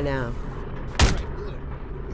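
A gunshot cracks sharply.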